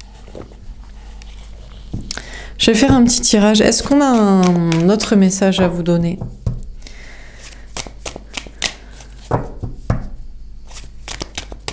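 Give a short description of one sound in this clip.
Cards shuffle and tap softly in a person's hands.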